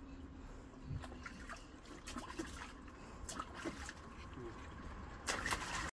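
Water splashes gently in a small pool.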